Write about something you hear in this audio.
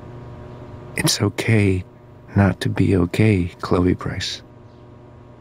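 A man speaks calmly and warmly.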